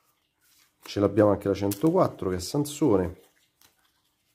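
Paper stickers rustle and slap softly as they are handled.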